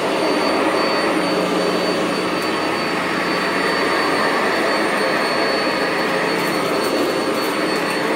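Debris rattles as a vacuum cleaner sucks it up.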